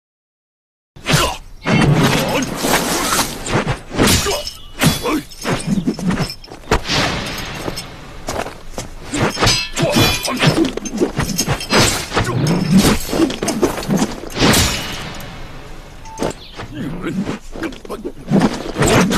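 A pole whooshes through the air as it swings.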